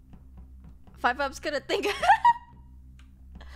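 A young woman speaks excitedly into a microphone close by.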